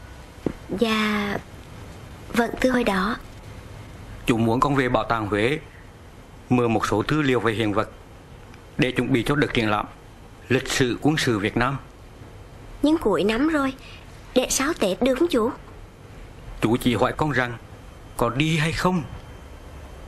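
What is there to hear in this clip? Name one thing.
A middle-aged man speaks earnestly nearby.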